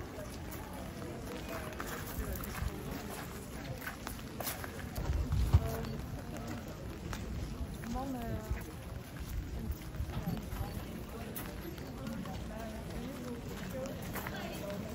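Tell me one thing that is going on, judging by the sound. Rain patters on umbrellas.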